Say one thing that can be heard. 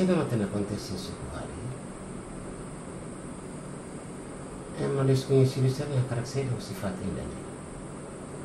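A middle-aged man speaks calmly and seriously nearby.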